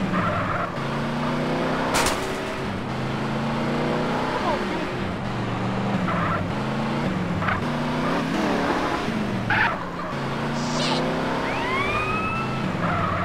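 Car tyres screech during a drift.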